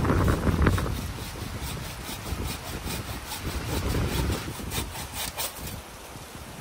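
Dry branches crackle and snap as they are dragged through brush.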